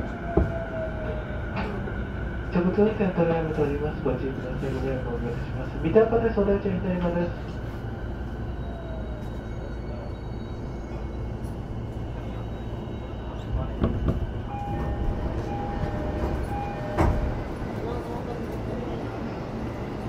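A train rumbles steadily along its tracks.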